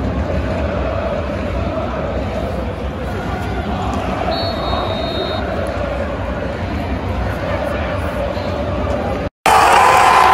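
A large stadium crowd murmurs and roars.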